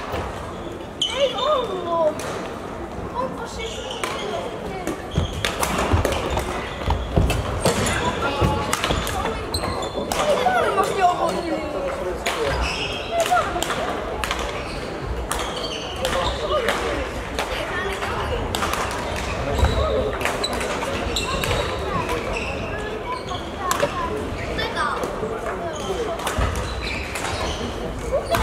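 Shuttlecocks are struck with rackets in a large echoing hall.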